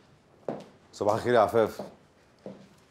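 An older man speaks briefly and calmly.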